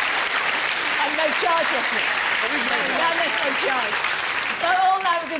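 A woman speaks into a microphone over the applause.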